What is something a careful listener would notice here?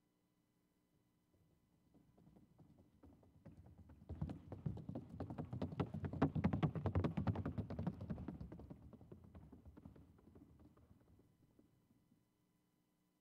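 Horse hooves beat in a rapid, even patter on a wooden board, growing louder and then fading.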